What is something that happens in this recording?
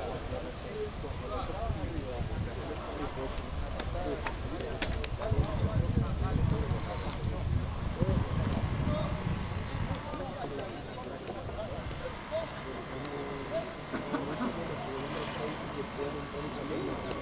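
Young men shout and call out across an open field.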